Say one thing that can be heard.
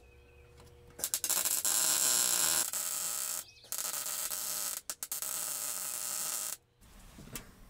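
An electric welder crackles and hisses in sharp bursts.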